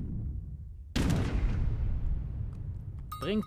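A cannon booms loudly and the blast rumbles away.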